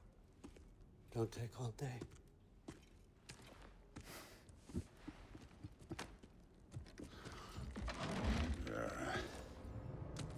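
A burly man speaks loudly with a deep voice.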